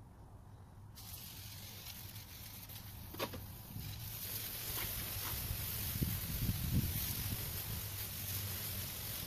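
Compressed air sprays steadily from a hose.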